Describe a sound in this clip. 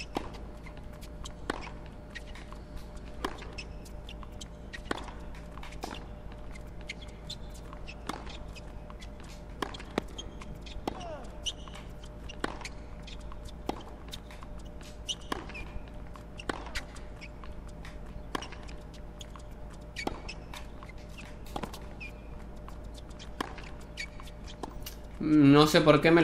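Tennis balls are struck sharply back and forth in a rally.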